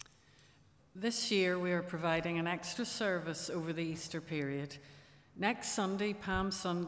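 A middle-aged woman speaks calmly into a microphone in a large echoing room.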